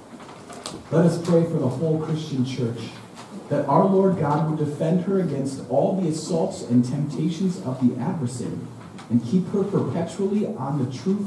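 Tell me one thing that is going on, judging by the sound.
A man reads aloud calmly, his voice echoing slightly in a large room.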